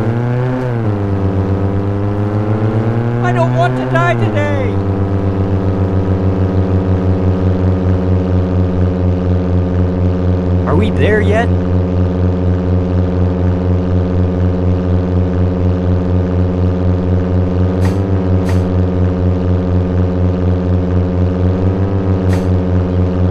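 A car engine hums steadily, rising and falling in pitch as the car speeds up and slows down.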